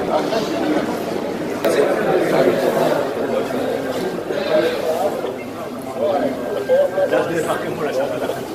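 A crowd of men talk and murmur close by.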